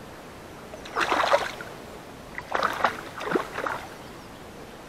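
A fish splashes at the surface of calm water nearby.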